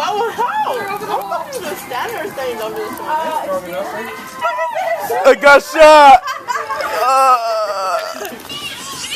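A fire crackles and roars as cardboard burns.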